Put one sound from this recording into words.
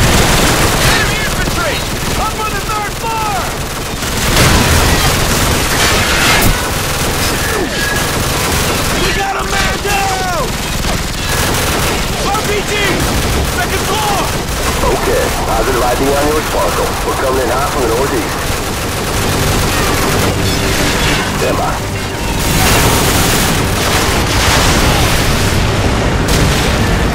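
Gunfire crackles in bursts amid heavy battle noise.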